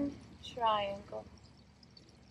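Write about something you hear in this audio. A young woman speaks calmly and briefly, close by.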